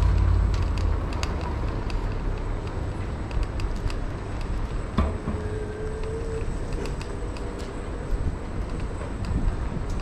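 Traffic hums along a nearby street outdoors.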